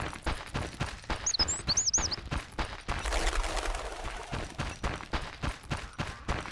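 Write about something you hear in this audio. Quick footsteps run on a stony path.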